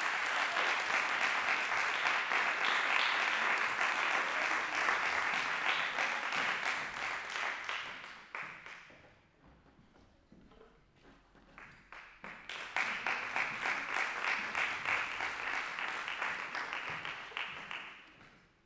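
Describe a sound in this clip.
An audience applauds in a large echoing hall, fading out and then starting up again.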